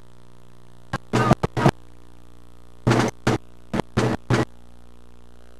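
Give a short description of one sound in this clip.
Drums are struck in short bursts of beats.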